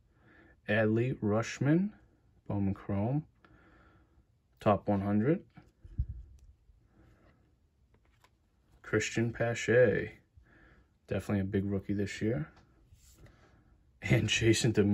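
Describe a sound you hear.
Stiff trading cards slide and rustle against each other in hands.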